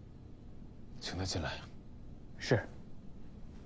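An elderly man answers briefly and calmly.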